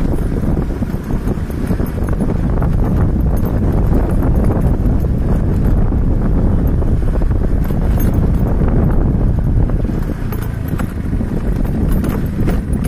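Wind blows hard outdoors, rumbling steadily.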